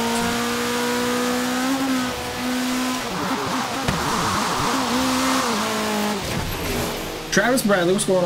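A racing car engine drones at high revs.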